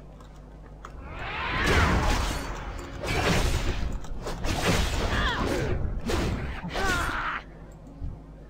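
Weapons clash and strike in a loud fight.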